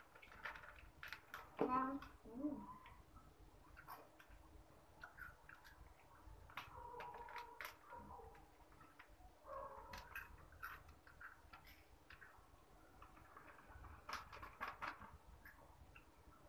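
A plastic snack wrapper crinkles and rustles.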